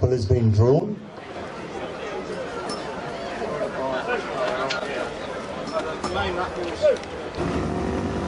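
A crowd murmurs outdoors.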